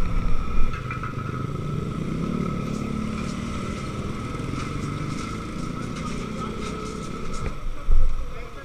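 Motorcycles pass by on a road.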